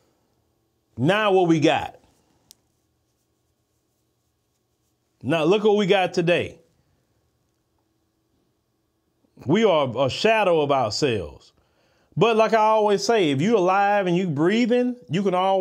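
A man speaks slowly and deliberately into a close microphone, with long pauses.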